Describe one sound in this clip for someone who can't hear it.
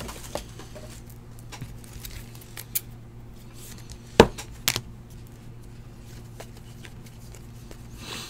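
Hands flick and slide through a stack of trading cards.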